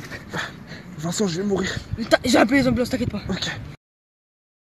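A young boy cries out close by.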